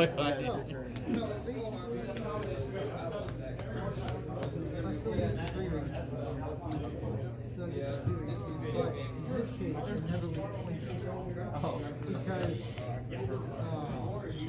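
Playing cards tap and slide on a table.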